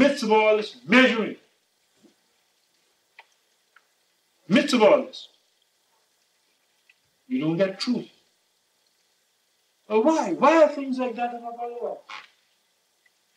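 An elderly man speaks calmly in short phrases with pauses.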